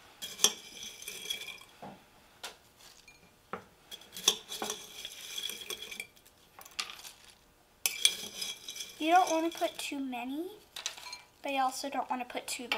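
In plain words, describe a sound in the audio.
A metal spoon clinks and scrapes against a glass jar.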